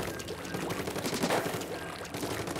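A sharp wet splat bursts once.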